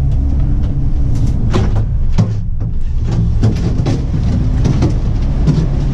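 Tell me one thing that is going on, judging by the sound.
Gondola doors clatter open with loud knocks.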